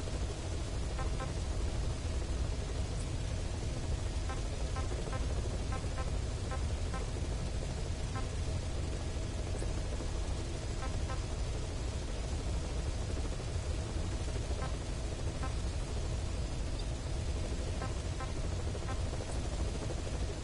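Soft electronic menu blips sound as selections change.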